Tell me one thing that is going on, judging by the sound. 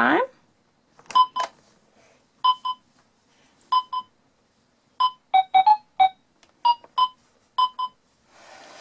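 A toy plays short electronic chiming beeps.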